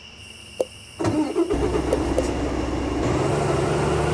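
A heavy truck engine starts up with a rumble.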